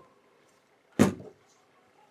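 A small metal case clacks down onto a table.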